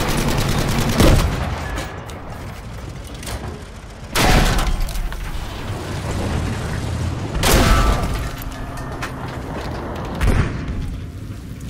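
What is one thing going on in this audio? Heavy explosions boom nearby, one after another.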